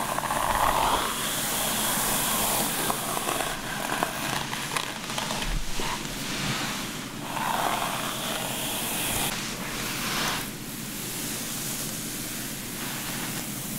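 A brush sweeps through damp hair with a soft swishing.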